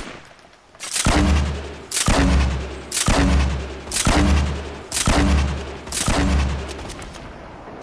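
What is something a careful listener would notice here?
A heavy gun fires loud, booming single shots at a steady pace.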